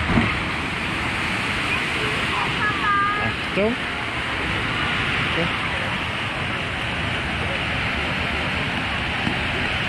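Water rushes loudly down a channel nearby.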